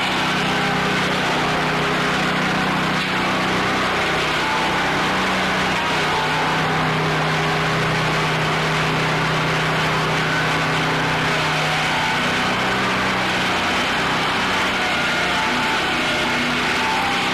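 A sawmill blade cuts loudly through a log with a steady roar.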